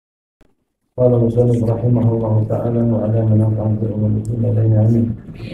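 A man chants steadily into a microphone in a slow, drawn-out voice.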